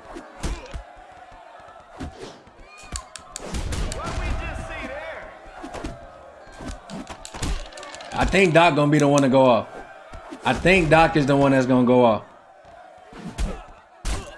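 Punches and kicks thud in quick blows.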